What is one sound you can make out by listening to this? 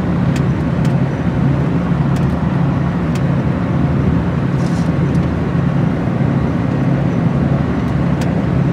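Tyres roar steadily on a road.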